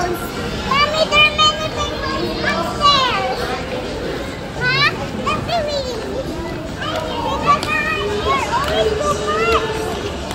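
A young child squeals and shouts excitedly nearby.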